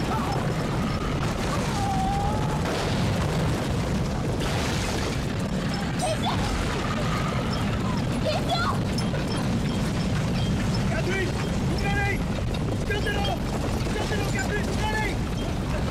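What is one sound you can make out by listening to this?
Horses' hooves pound over dry ground.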